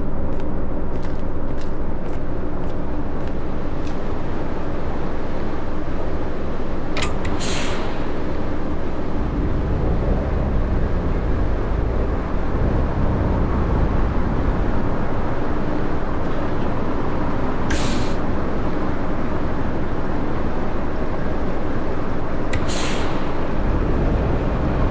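A bus engine hums steadily and grows louder as the bus pulls away.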